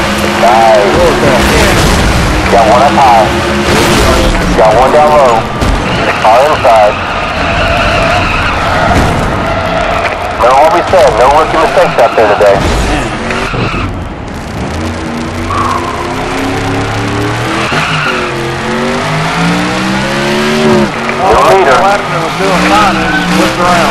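A race car engine roars at high revs.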